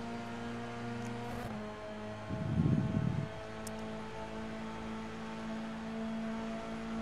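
A racing car engine whines steadily at high revs.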